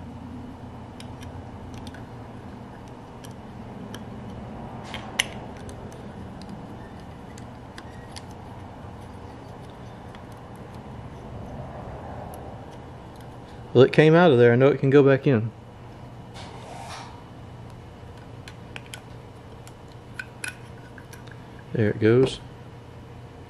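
Small metal parts click and tap softly.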